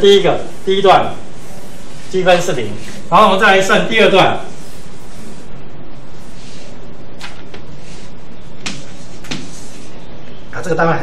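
A man speaks calmly, as if lecturing, in a slightly echoing room.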